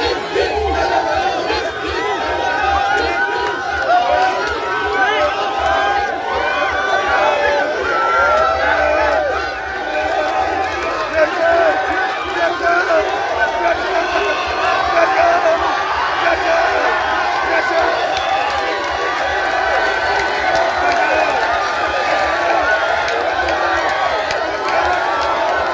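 A large crowd of young people sings and cheers loudly outdoors.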